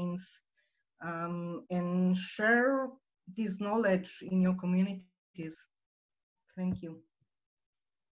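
A middle-aged woman speaks calmly into a microphone over an online call.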